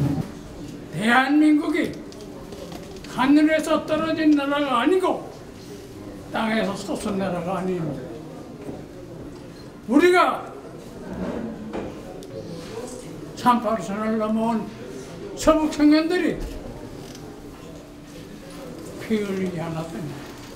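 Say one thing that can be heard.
An elderly man speaks slowly and firmly through a microphone and loudspeakers in a large echoing hall.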